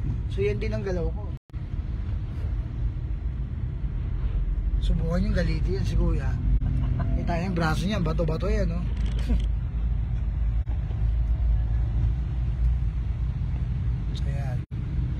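A car engine rumbles steadily from inside the cabin.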